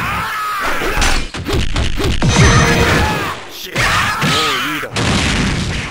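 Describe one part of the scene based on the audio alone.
Punches and kicks land with sharp, heavy thuds in quick succession.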